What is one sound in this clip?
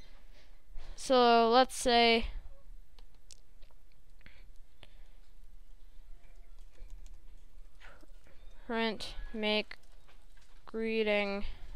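A young boy speaks calmly, close to a headset microphone.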